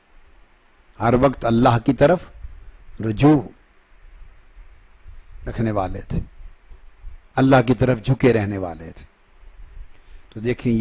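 An elderly man speaks calmly and with emphasis into a microphone, in short phrases with pauses.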